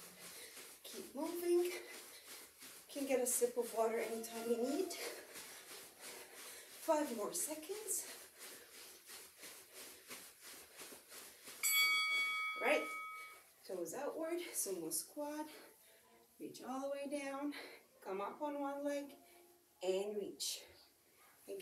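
A young woman speaks with animation, giving instructions close by.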